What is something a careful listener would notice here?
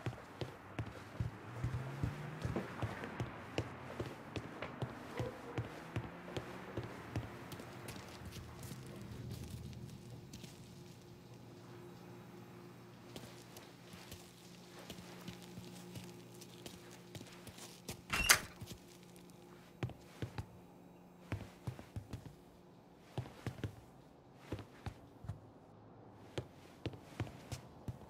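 Footsteps thump on wooden stairs and floors.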